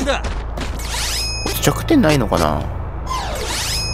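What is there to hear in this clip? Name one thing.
Magical battle effects whoosh and chime.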